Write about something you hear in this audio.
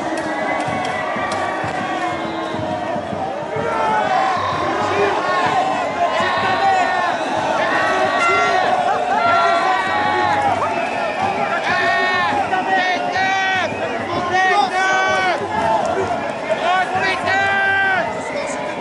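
A large crowd of demonstrators shouts and chants outdoors.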